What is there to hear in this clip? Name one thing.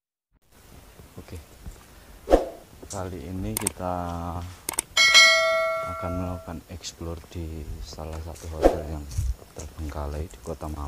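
A young man speaks in a low, hushed voice close by.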